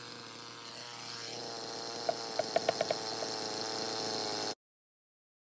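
A chainsaw idles with a steady hum.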